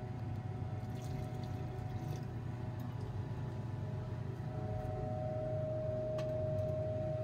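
Glass knocks lightly against glass.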